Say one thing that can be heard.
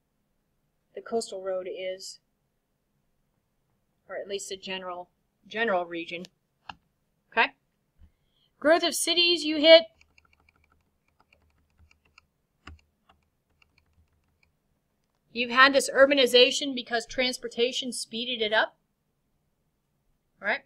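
A woman speaks calmly into a computer microphone, lecturing in pauses.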